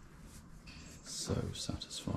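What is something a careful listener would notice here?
A paintbrush swishes across a metal panel.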